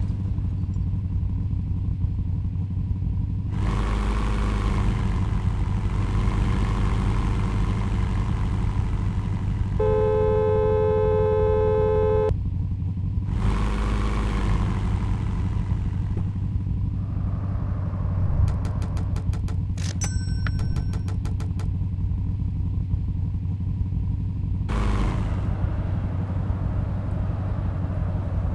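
A car engine hums steadily and revs up now and then.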